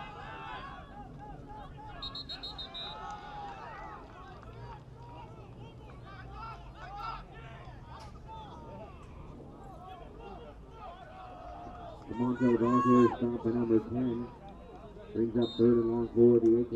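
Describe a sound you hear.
Teenage boys call out to each other nearby.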